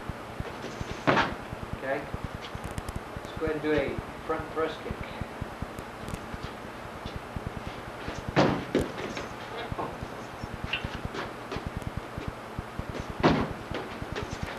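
Kicks thud against a padded shield.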